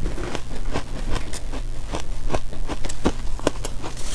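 A spoon scrapes against a metal bowl.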